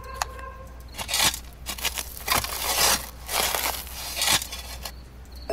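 Dirt scrapes and rustles as it is brushed away.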